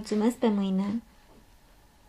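A young woman speaks brightly.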